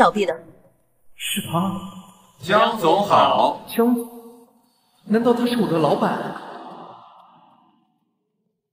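A young man speaks quietly with surprise nearby.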